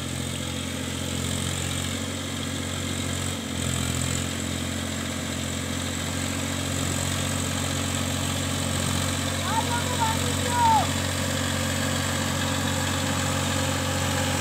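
A tractor engine drones steadily nearby.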